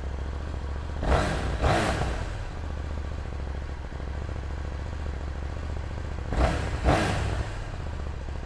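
A motorcycle engine revs sharply twice and drops back.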